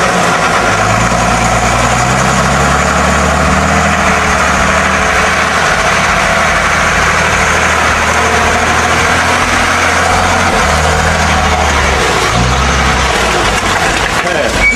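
A heavy truck engine roars and labours under load.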